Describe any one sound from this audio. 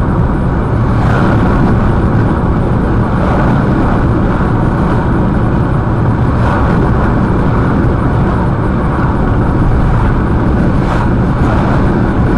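Oncoming trucks whoosh past close by.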